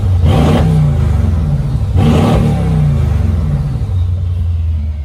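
A powerful car engine revs sharply twice, roaring and falling away.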